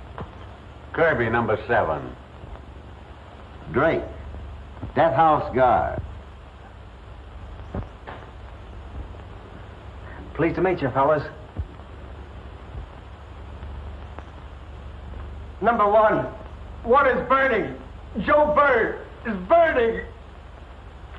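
Several men talk in turn, close by, in short lines.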